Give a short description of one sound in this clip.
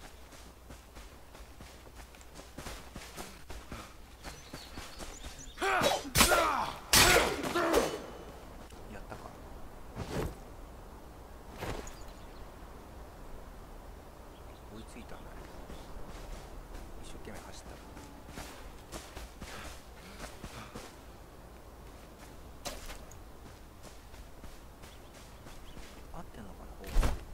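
Footsteps patter over grass.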